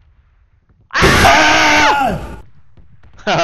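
A young man shouts loudly in surprise into a headset microphone.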